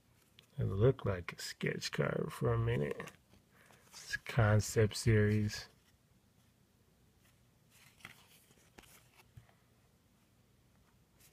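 Trading cards rustle and slide softly in someone's hands.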